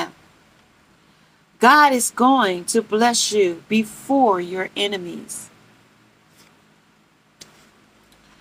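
Paper cards rustle as they are shuffled.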